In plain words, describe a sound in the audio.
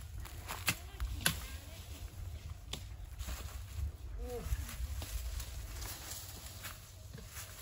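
Leaves rustle as a man pushes through dense plants.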